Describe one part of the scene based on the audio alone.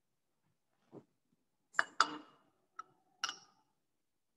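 Glass clinks as a bottle is set down on a hard surface.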